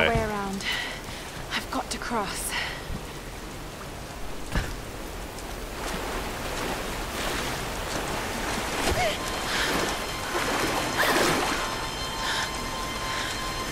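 A rushing river roars steadily.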